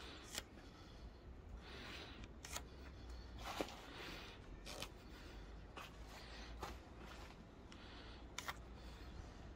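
A hand rubs and brushes along a wooden beam.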